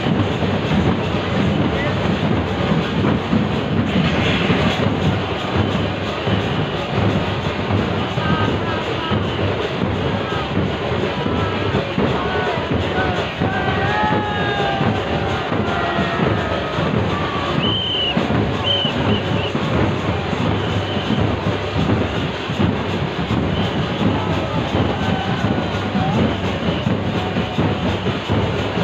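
A drum beats loudly in a steady rhythm.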